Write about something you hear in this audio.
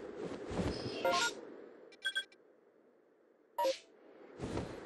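Short electronic chimes sound as a menu opens and closes.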